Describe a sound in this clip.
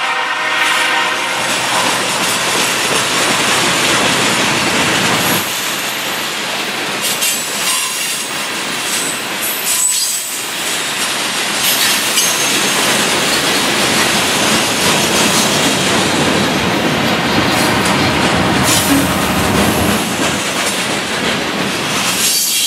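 A long freight train rolls past close by.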